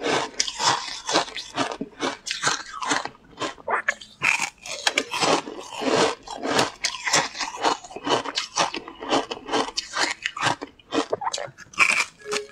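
A dry crisp sheet crackles and snaps as fingers break it.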